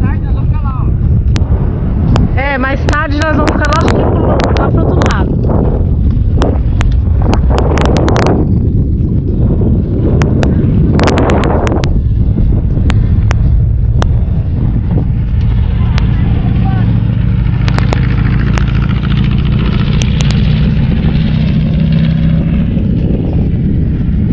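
Wind blows hard across the microphone outdoors.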